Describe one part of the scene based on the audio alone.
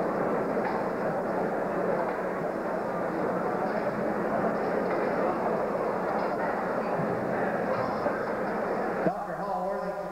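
A crowd in a large hall cheers and chatters.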